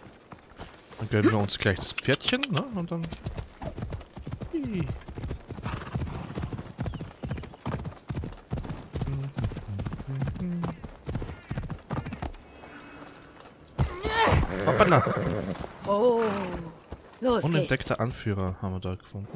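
A horse's hooves thud as the horse gallops over rough ground.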